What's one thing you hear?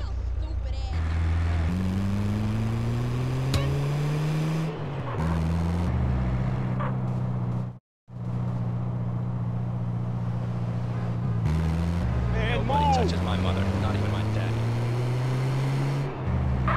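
A van engine revs up and shifts gears as it drives away, rising in pitch again and again.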